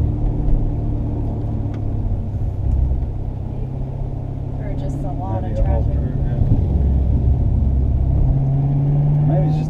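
A car engine drones steadily and revs up near the end.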